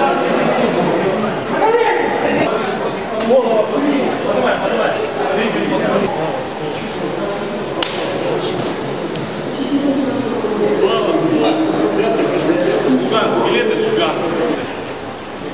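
Several men shout and talk over one another close by during a scuffle.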